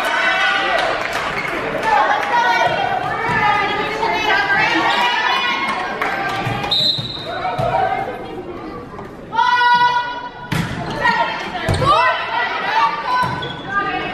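Young girls call out to each other on the court.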